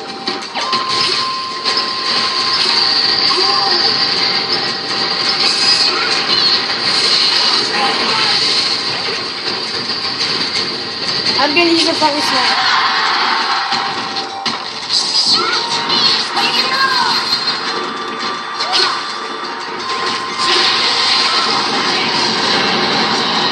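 Video game fight sounds and music play loudly from a television.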